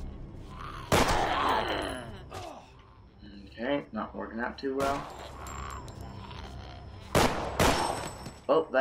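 A pistol fires loud, sharp shots.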